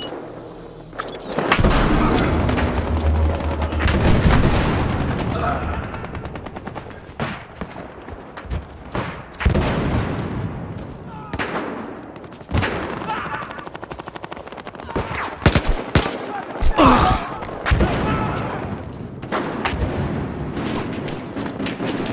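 Gunshots and explosions crack and boom in a game battle.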